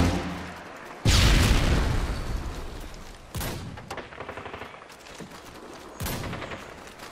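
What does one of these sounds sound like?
A rifle fires loud, booming shots that echo away.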